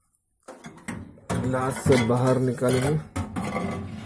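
A glass turntable plate rattles and clinks as a hand lifts it.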